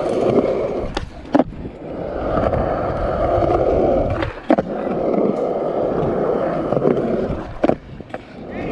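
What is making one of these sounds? Skateboard wheels clack sharply over seams in the concrete.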